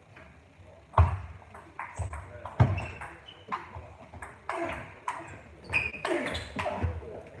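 A table tennis ball clicks rapidly back and forth on a table and paddles in a large echoing hall.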